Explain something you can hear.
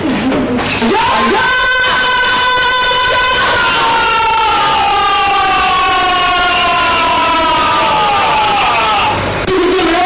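A woman screams loudly and at length.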